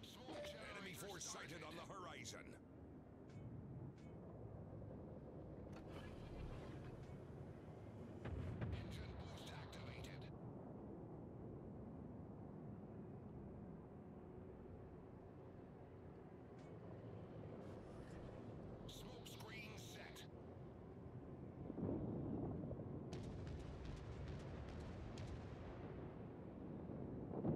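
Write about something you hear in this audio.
A warship's engine rumbles low and steadily over the sea.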